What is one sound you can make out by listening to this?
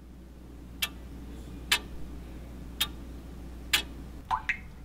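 A clock ticks slowly and steadily.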